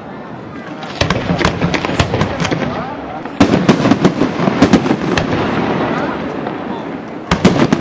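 Fireworks burst with loud bangs and crackles outdoors.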